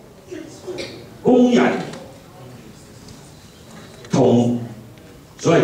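A middle-aged man speaks with animation into a microphone, heard over a loudspeaker in a room.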